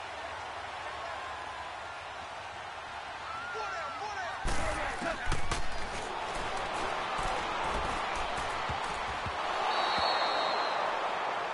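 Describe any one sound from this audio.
A large stadium crowd roars steadily and swells louder near the end.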